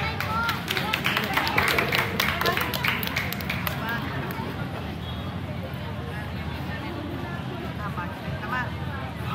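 A large crowd chatters and cheers in the open air.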